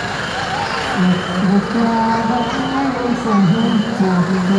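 Men's voices chant loudly nearby.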